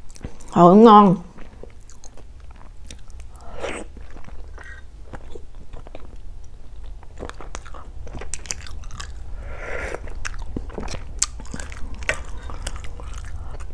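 A metal spoon clinks and scrapes against an eggshell.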